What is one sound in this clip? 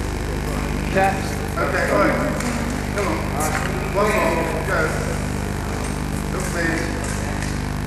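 Men talk and laugh close by.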